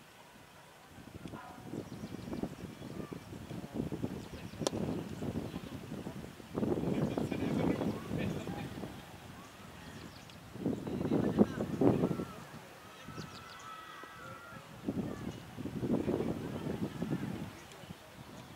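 Men on a field shout and call out to each other outdoors.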